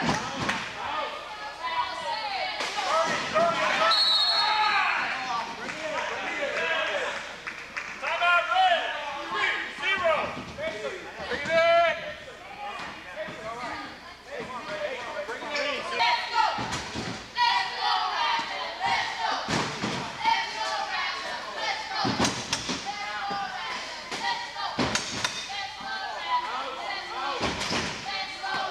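Voices of people in a crowd chatter and shout in a large echoing hall.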